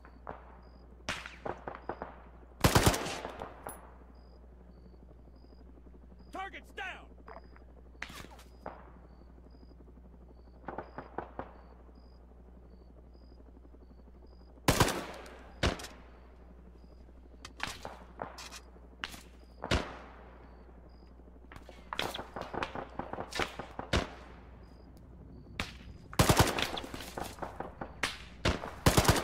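Rifle shots crack sharply in quick bursts, echoing outdoors.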